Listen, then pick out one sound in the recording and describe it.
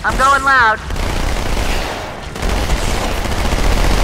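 Guns fire rapid bursts of shots.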